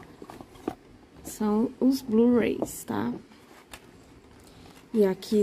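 A cardboard box is handled, with light taps and rustles.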